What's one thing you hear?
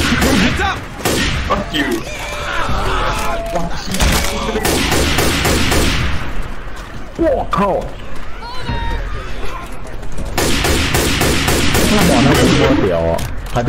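A scoped rifle fires shots.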